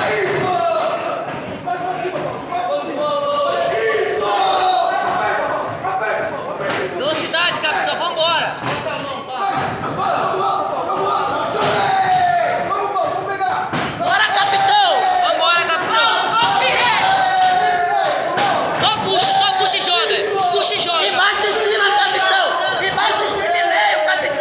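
Many voices shout and cheer from a crowd nearby in a room that echoes.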